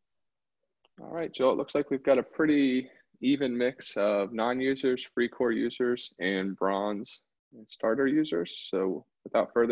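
A man speaks calmly through a microphone in an online call.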